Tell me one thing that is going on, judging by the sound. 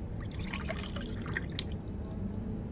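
Liquid pours and fizzes into a glass flask.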